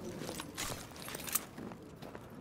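Metal clicks and clacks as a pistol is reloaded.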